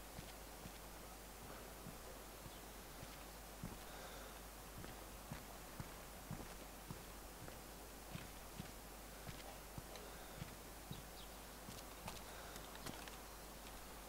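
Footsteps thud steadily on a hard floor and stairs.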